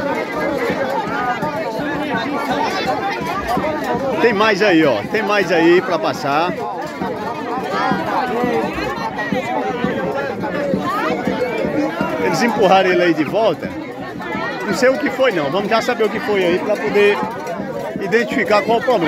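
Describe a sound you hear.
A crowd of people chatters and shouts all around.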